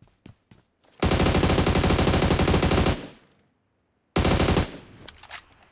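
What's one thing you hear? A rifle fires in a rapid, loud burst.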